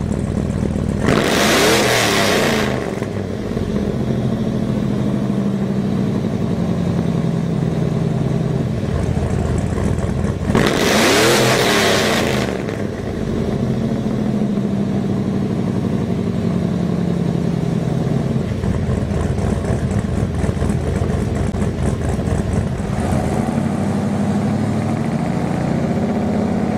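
A diesel truck engine idles with a deep, steady rumble.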